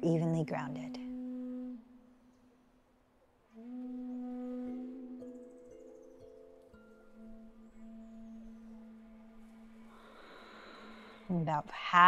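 A woman speaks softly and calmly close by.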